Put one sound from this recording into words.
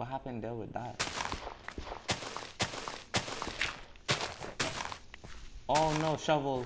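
A shovel digs into dirt with quick crunching scrapes.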